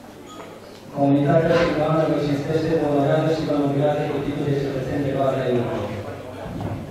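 An elderly man reads out loudly and formally.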